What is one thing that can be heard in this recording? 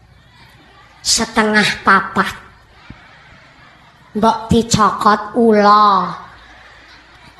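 A young woman speaks forcefully into a microphone through loudspeakers, her voice rising to shouts.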